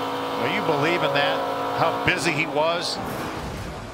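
A racing truck engine roars at high speed.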